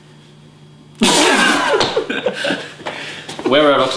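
Young men burst out laughing loudly.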